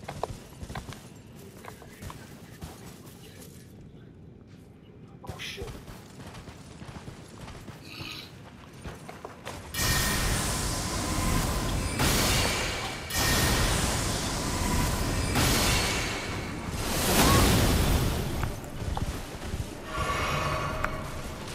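Hooves thud steadily on grass as a horse rides along.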